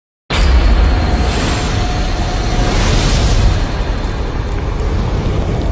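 Flames whoosh and roar, then fade away.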